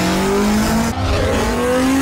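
Tyres screech as a car skids.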